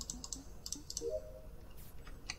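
A short rising chime sounds as a game task completes.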